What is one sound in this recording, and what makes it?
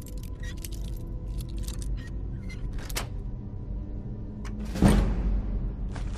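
A lock pick clicks and scrapes inside a lock.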